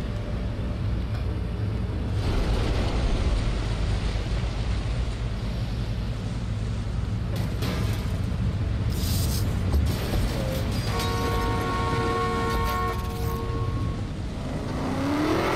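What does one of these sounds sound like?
A sports car engine idles with a low rumble.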